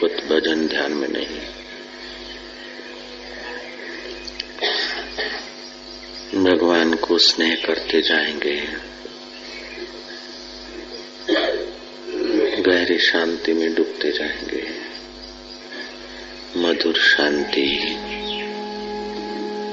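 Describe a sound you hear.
A man chants slowly and calmly, close to a microphone.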